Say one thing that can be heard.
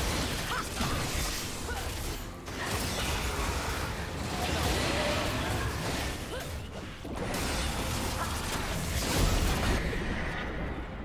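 Game characters clash in battle with magic blasts and strikes.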